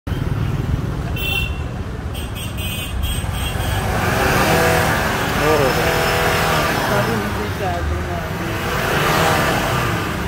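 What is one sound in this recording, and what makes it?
A car engine idles roughly, its exhaust sputtering close by.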